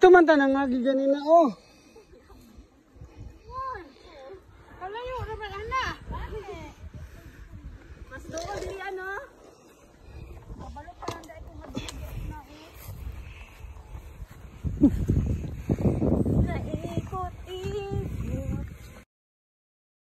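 Women talk and laugh nearby outdoors.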